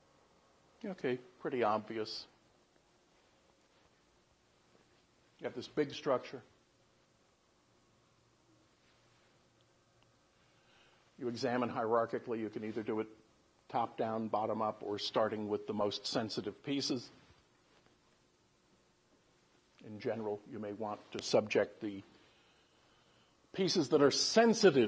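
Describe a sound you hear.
An older man lectures calmly in bursts, with pauses between phrases.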